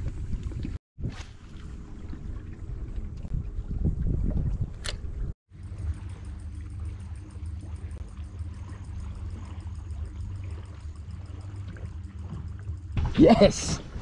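Wind blows across open water.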